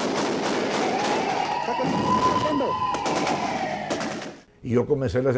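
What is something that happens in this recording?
An ambulance siren wails and passes.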